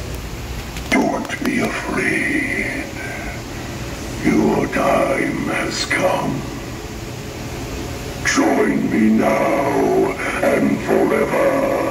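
A deep, menacing voice speaks slowly through a loudspeaker.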